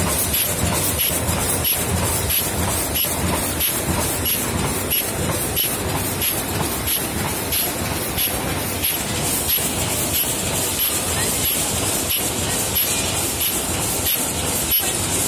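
Automated factory machines clatter and hum steadily in a rhythmic cycle.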